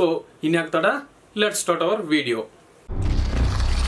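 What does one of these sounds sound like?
A young man speaks calmly and close up.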